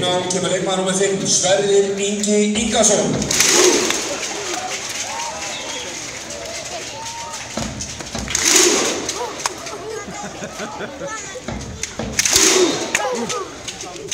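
A large crowd of fans sings a chant in unison outdoors.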